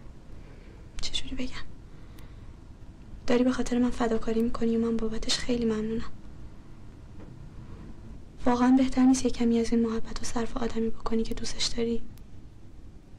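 A young woman speaks quietly and sadly, close by.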